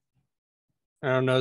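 A man speaks loudly through an online call.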